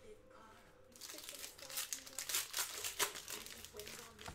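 Plastic wrapping crinkles as hands tear open a pack.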